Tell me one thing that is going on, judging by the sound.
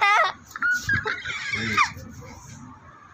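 A young girl laughs.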